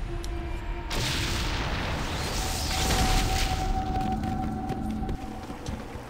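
A magic spell bursts with a loud roaring whoosh.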